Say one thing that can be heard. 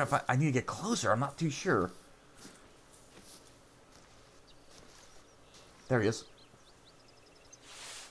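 Tall grass rustles underfoot as someone walks slowly.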